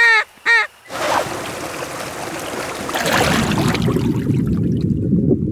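A river rushes and splashes over rocks.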